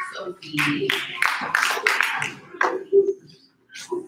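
A girl claps her hands.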